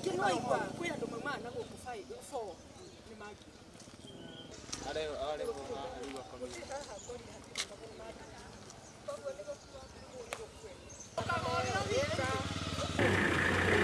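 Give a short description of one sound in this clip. Men and women talk outdoors at a distance.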